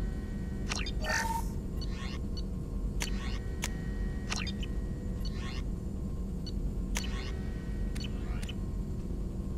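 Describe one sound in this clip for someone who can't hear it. Short electronic clicks and chirps sound as menu options change.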